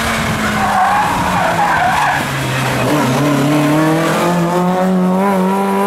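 Tyres skid on loose gravel.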